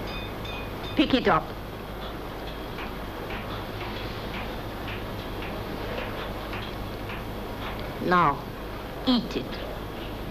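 A woman speaks sternly close by.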